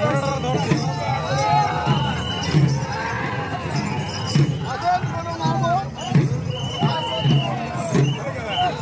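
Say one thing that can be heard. A crowd of men shouts and chants outdoors.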